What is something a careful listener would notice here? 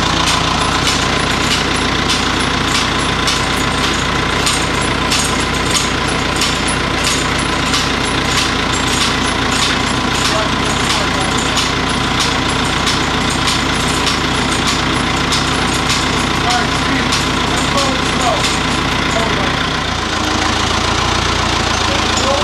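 A forklift engine hums steadily nearby.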